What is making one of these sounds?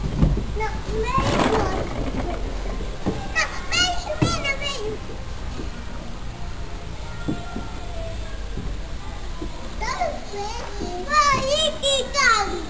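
A small child squeals and shrieks excitedly.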